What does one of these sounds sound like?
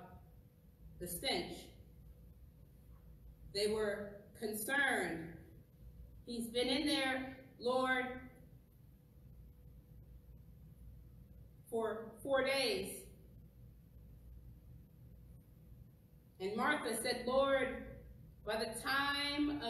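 A woman reads aloud slowly and calmly, with pauses, her voice echoing slightly in a large room.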